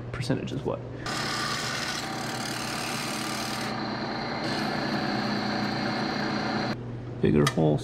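A drill press motor whirs steadily, then stops.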